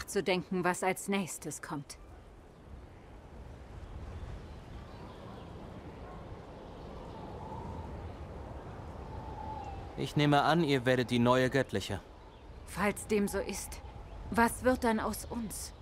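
A woman speaks calmly and up close.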